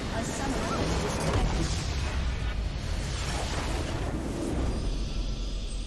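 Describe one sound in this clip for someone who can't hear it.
A game explosion blasts and crackles loudly.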